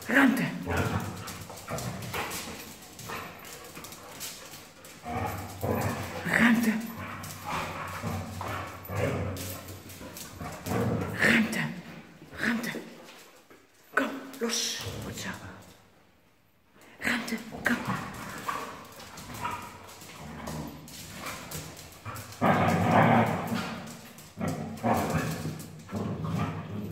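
Dogs growl and snarl while play-fighting.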